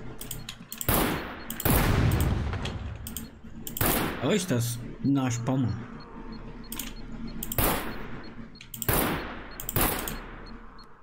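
A pistol fires several shots.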